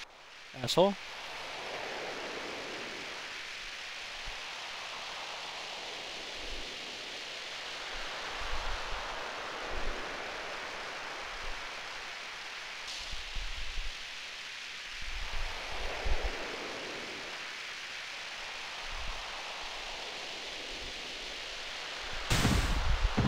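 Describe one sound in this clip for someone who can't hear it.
A snowboard hisses steadily over snow.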